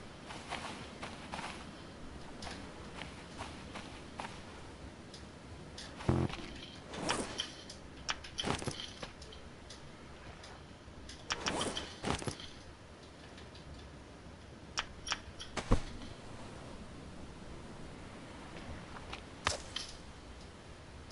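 Footsteps crunch softly on sand and grass.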